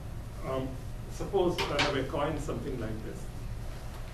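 An elderly man speaks briefly and calmly, close by.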